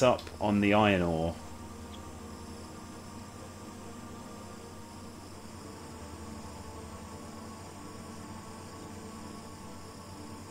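A mining machine drones steadily.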